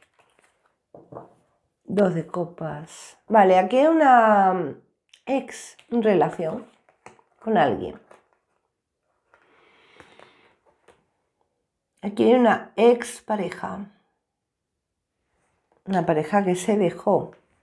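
A middle-aged woman speaks calmly and close into a microphone.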